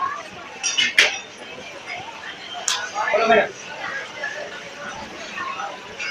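A crowd of people chatters close by.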